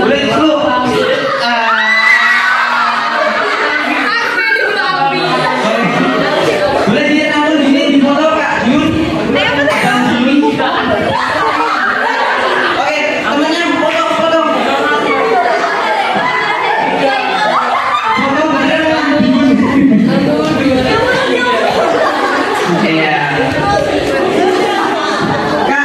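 A small crowd talks and cheers.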